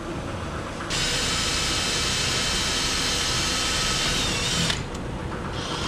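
A cordless drill whirs steadily.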